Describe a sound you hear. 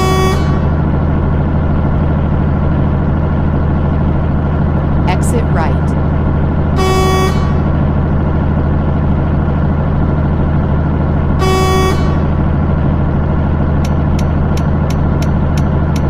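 A truck engine hums with a steady low drone.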